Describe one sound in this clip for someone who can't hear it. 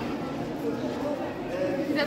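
A crowd murmurs outdoors.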